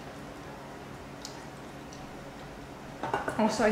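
A glass clinks down on a table.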